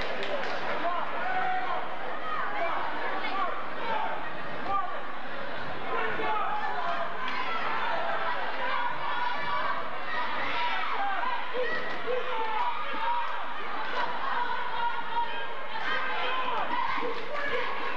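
A large crowd chatters and cheers in a big echoing gym.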